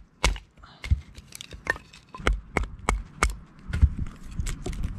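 A knife scrapes and shaves wood.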